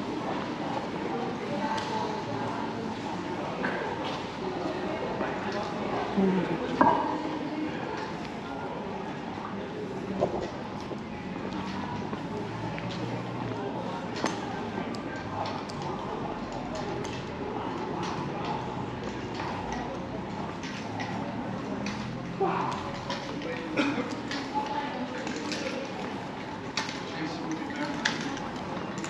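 Outdoor street bustle murmurs steadily with distant voices.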